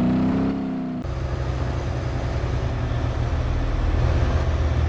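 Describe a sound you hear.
A tractor engine rumbles low and steady.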